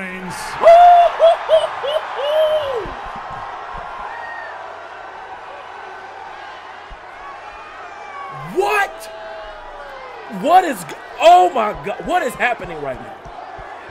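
A young man speaks excitedly and loudly, close to a microphone.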